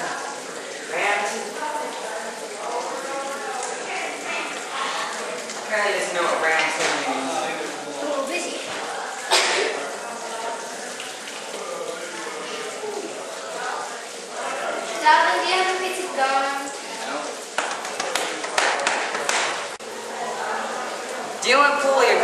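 Teenage boys talk and laugh nearby.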